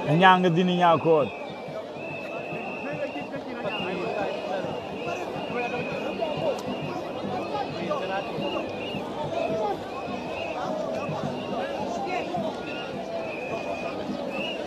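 A large crowd chatters and cheers outdoors in the distance.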